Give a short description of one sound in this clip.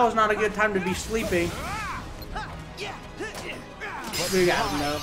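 Blades swish and clash in a fast fight.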